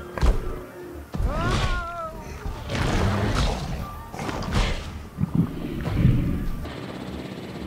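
A large dinosaur roars loudly several times.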